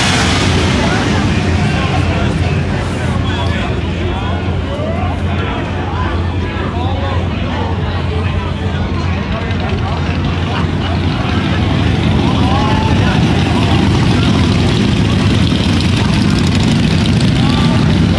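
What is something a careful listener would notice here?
A crowd of spectators chatters outdoors.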